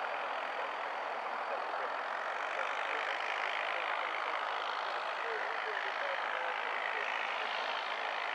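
A small jet roars steadily as it rolls down a runway far off.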